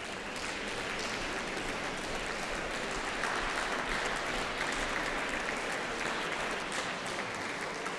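High heels click on a wooden stage floor.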